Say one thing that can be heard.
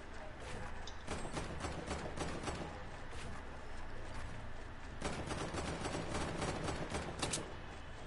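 Game building pieces snap into place in quick, repeated clicks.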